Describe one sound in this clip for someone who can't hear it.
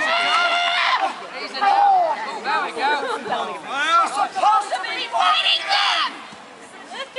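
A woman shouts theatrically outdoors.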